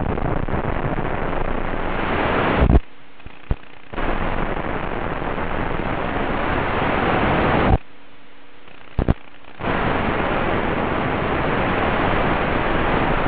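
Wind roars steadily past a flying drone, cutting out twice for about a second.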